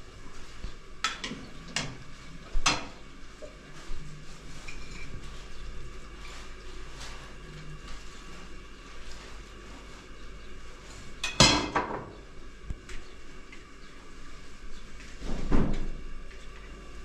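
Kitchenware clinks and clatters now and then.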